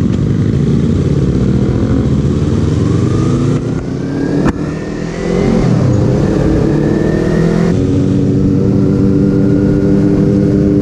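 A motorcycle engine rumbles steadily close by, its pitch rising and falling as the rider changes speed.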